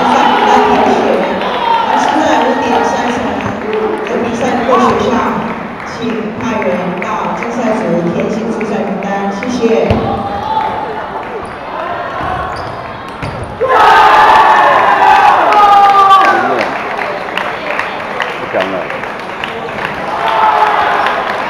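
A large crowd chatters and calls out in an echoing hall.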